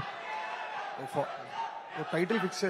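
A man speaks into a microphone, heard over loudspeakers in a large echoing hall.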